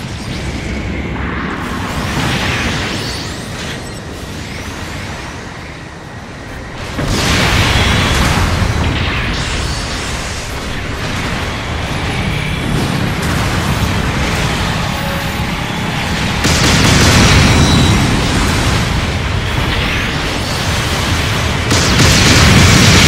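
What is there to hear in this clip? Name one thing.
Robot thrusters roar steadily as the machine boosts through the air.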